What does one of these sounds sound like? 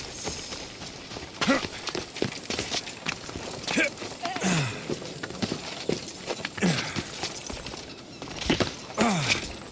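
Hands and feet scrape on rock while climbing.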